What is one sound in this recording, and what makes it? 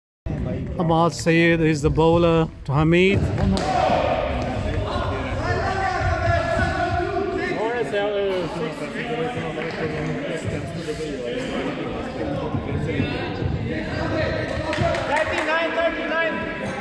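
Men talk and call out to one another in a large echoing hall.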